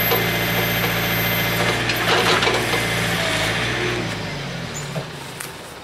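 A backhoe engine rumbles steadily nearby.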